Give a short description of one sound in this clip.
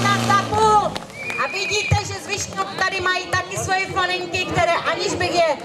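A woman announces over a loudspeaker outdoors.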